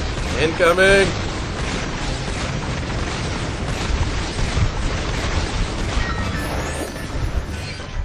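A cannon fires rapid booming energy blasts.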